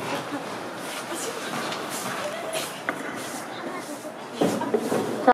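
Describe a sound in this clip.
Ice skate blades scrape and hiss across the ice.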